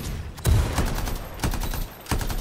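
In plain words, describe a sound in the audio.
A loud explosion booms with a deep rumble.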